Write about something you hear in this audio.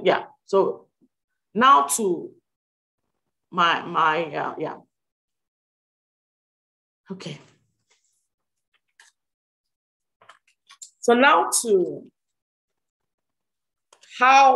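A woman speaks calmly in short phrases over an online call.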